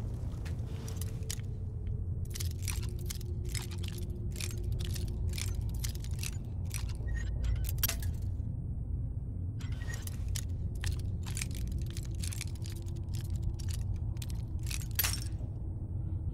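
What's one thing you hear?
A lock clicks and scrapes as it is picked.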